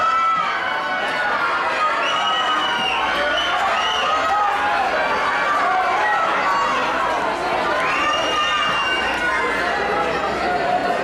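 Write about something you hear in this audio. A crowd of spectators cheers and shouts encouragement.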